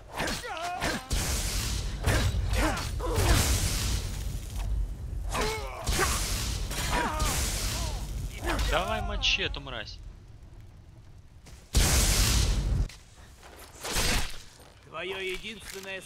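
Blades clash and strike hard in a fight.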